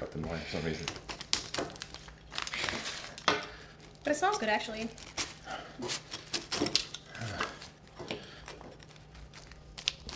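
A pizza cutter rolls and crunches through a pizza crust.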